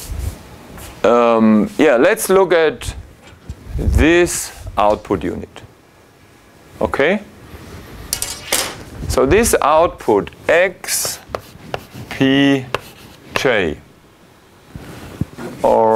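A man speaks calmly and clearly nearby, lecturing.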